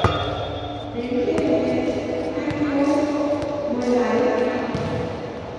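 Young men call out and shout to each other across the court.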